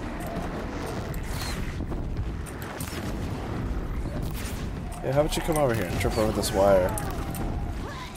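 A bowstring twangs as arrows fly.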